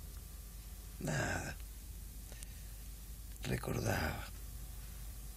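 A man speaks in a low, tired voice close by.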